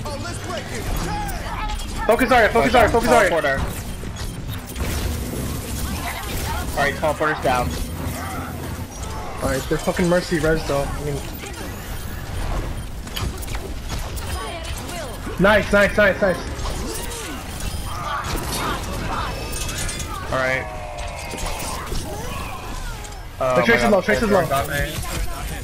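Video game gunfire crackles in rapid bursts.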